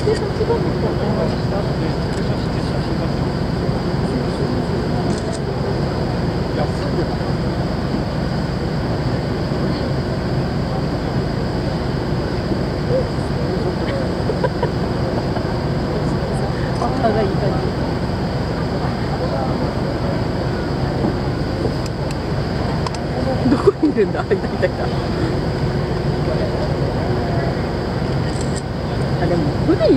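Wind blows outdoors and flaps a flag.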